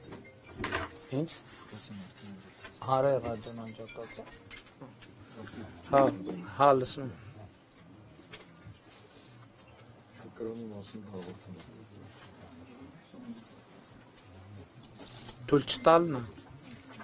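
A middle-aged man talks on a phone in short bursts, heard close through a microphone.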